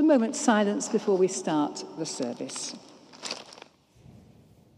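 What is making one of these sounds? An elderly woman speaks calmly into a microphone in a large echoing hall.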